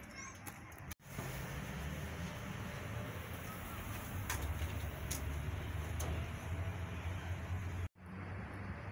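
Wind buffets outdoors with a low rumble.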